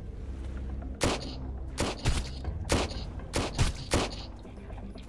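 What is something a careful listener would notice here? Pistol shots ring out one after another.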